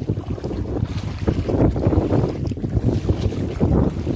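Feet slosh through shallow water.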